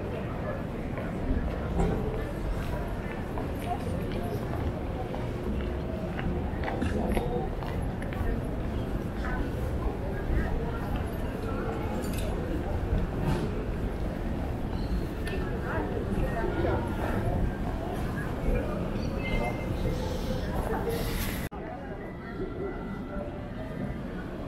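Footsteps pass on stone paving.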